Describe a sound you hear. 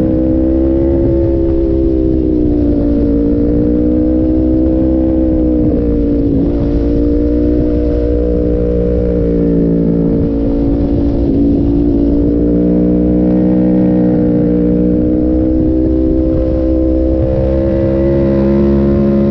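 A motorcycle engine hums steadily, its pitch rising and falling through bends.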